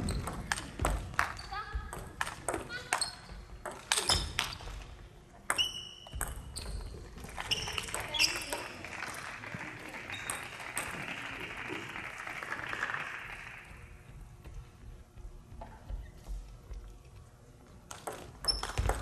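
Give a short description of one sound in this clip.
A table tennis ball clicks rapidly back and forth on paddles and the table in a large echoing hall.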